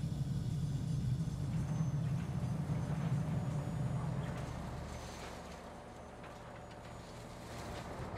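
Heavy digging machines rumble and grind at work.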